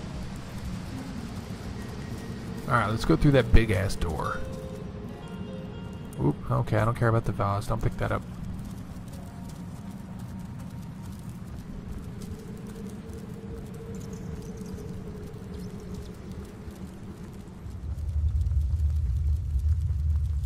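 Torch flames crackle softly.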